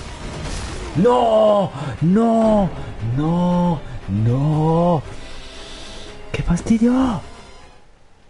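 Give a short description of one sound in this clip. A young man shouts loudly in long, drawn-out cries close to a microphone.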